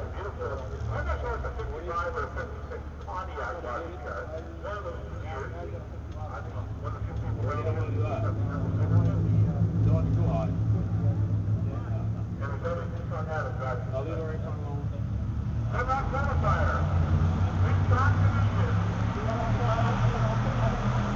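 A man talks nearby, close to the car.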